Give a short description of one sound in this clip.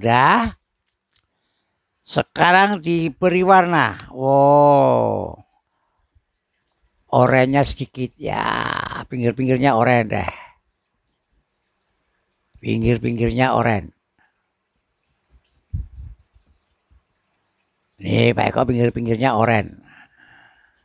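An elderly man speaks calmly through a headset microphone, in short phrases with pauses.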